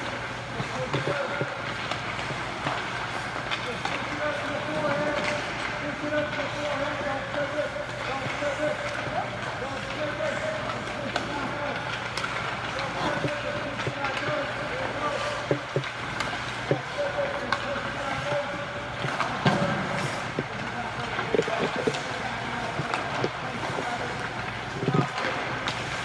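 Hockey sticks smack pucks with sharp cracks in a large echoing rink.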